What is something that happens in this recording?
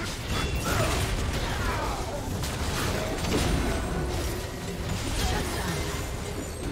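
Game characters' attacks strike with quick impacts.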